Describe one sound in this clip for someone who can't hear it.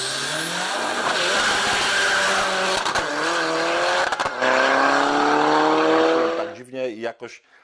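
A car engine roars loudly and revs up as it speeds away outdoors.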